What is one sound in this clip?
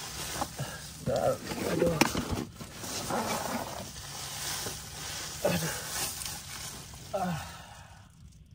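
A young man sighs and murmurs tiredly.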